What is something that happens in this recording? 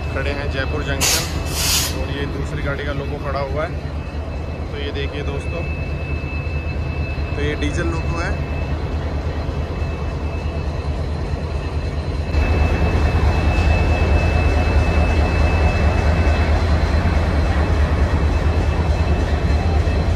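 A diesel locomotive engine rumbles loudly and steadily close by.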